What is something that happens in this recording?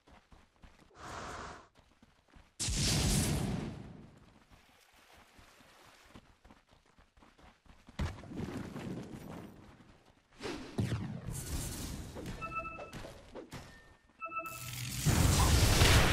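Magic spells whoosh and blast in bursts.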